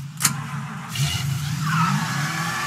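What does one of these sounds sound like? A car engine starts and revs up.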